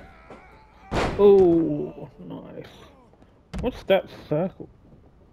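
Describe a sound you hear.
A body slams heavily onto a hard floor.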